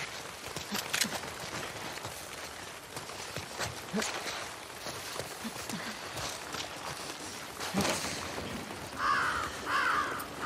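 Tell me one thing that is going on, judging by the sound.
Footsteps run over wet ground.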